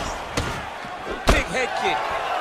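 A kick lands with a heavy thud.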